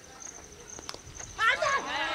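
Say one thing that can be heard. A bat knocks a cricket ball with a sharp crack.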